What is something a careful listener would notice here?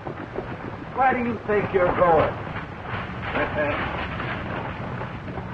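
Horses' hooves thud and shuffle on dirt.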